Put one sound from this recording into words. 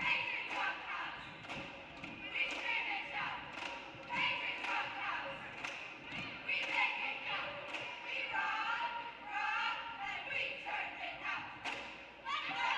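Young women clap their hands in rhythm.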